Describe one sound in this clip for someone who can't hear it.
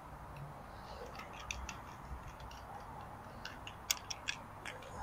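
Plastic parts click and tap softly as they are handled.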